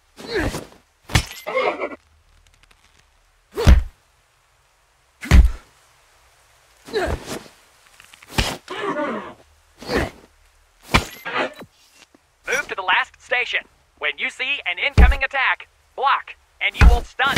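Heavy blows thud as a body is shoved again and again.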